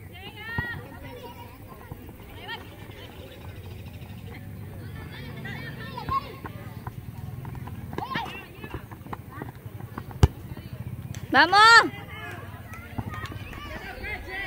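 Girls shout and call out to each other across an open field.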